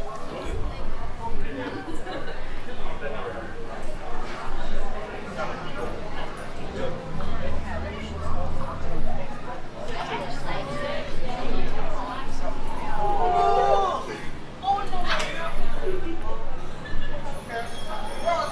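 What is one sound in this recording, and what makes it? A crowd of people chatters outdoors nearby.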